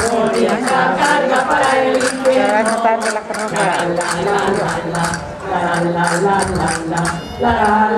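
Lively folk music plays outdoors.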